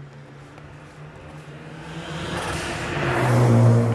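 A car engine roars louder as it approaches at speed.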